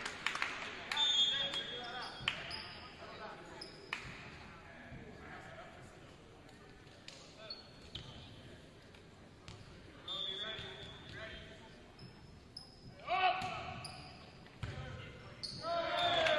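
A volleyball is struck with a thump.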